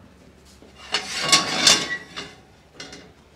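Food clatters into a frying pan.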